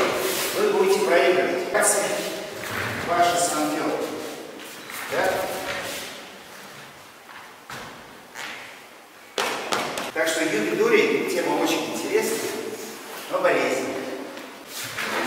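A man speaks calmly and steadily, close by, in an echoing hall.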